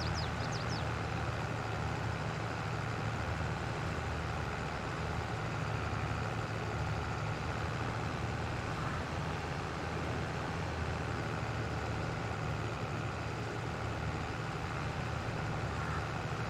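A heavy trailer rattles over rough ground.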